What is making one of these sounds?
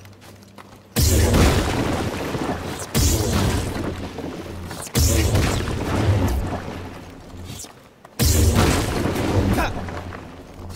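A lightsaber hums and swooshes loudly.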